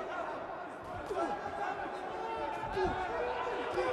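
Boxing gloves thud on a body during a close exchange of punches.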